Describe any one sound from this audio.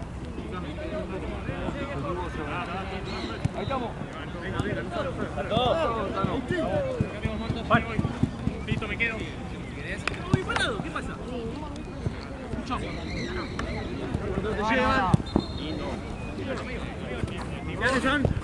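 Young men call out and shout to each other outdoors.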